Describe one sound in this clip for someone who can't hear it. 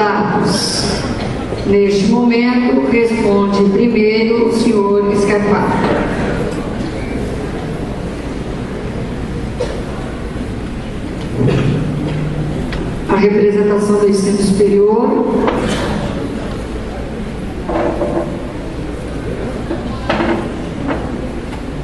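A man speaks steadily into a microphone, heard through loudspeakers in an echoing hall.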